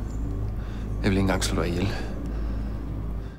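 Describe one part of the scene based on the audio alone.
A man speaks menacingly, close by.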